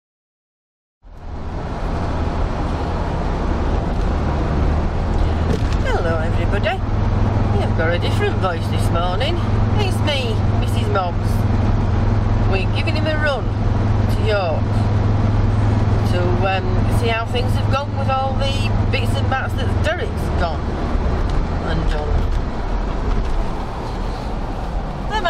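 A car engine drones steadily from inside the car.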